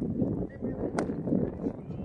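A cricket bat strikes a ball with a sharp crack in the distance.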